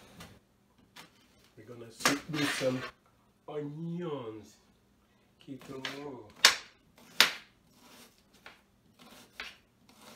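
A knife chops on a cutting board.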